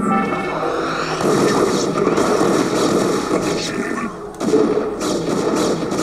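Video game units fire sci-fi energy blasts in a battle.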